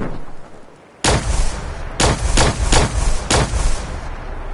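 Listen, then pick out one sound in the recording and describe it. A laser gun fires in sharp repeated bursts.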